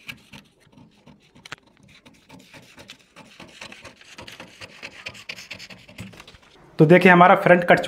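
Scissors snip through stiff paper.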